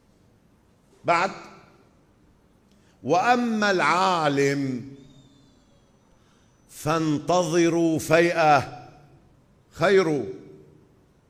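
A middle-aged man speaks with emotion into a microphone, in short chanted phrases, in an echoing hall.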